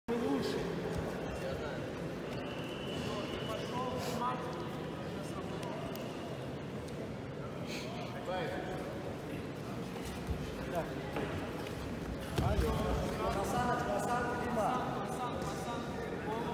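Voices chatter and echo around a large hall.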